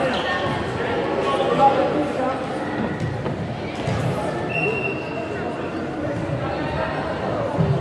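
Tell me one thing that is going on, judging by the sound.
Young players and spectators chatter and call out in a large echoing hall.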